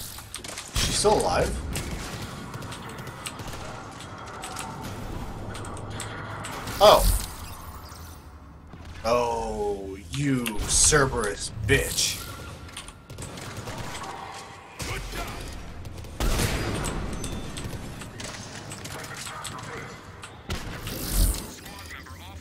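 Game gunfire cracks in sharp bursts.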